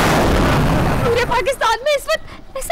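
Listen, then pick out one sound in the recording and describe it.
A young woman speaks excitedly nearby.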